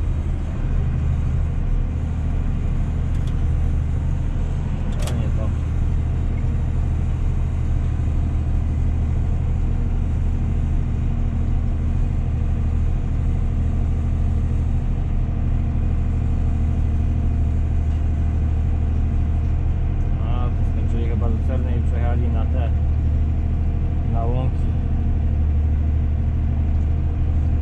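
A tractor engine rumbles steadily from inside the cab.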